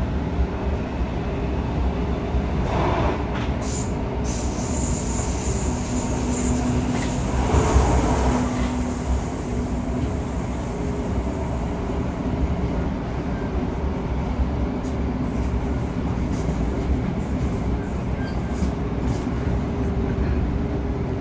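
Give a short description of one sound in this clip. An electric multiple-unit train rumbles along the track, heard from inside the carriage.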